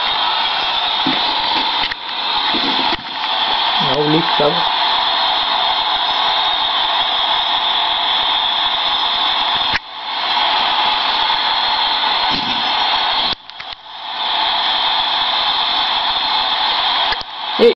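Music from a video game plays through a television speaker.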